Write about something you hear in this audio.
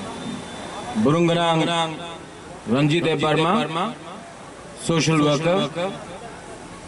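A man speaks loudly and forcefully into a microphone over loudspeakers, outdoors.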